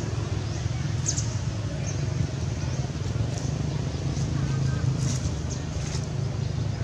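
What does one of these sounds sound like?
Dry leaves rustle and crunch under a monkey's feet.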